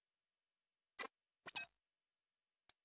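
A brief whooshing game effect plays.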